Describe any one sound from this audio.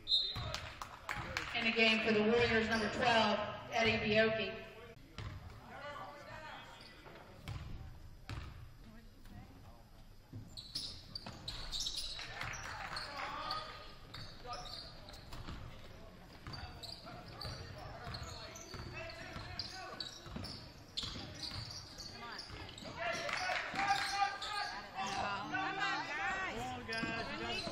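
Spectators in a large echoing gym talk and shout.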